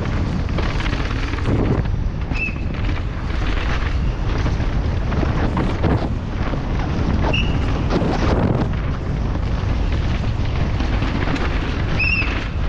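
Wind rushes loudly past a fast-moving mountain bike.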